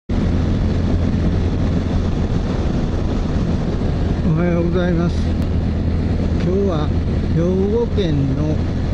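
A small motorcycle engine hums steadily while riding.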